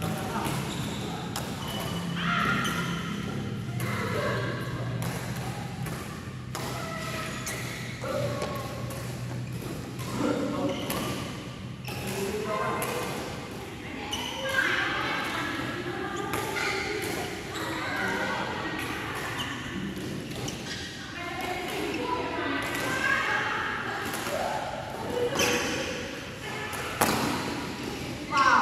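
Men talk and call out across a badminton court.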